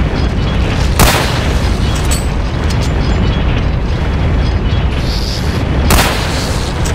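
A rifle fires with a loud crack.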